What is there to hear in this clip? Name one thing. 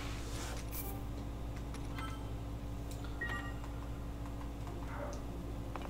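Soft menu blips sound.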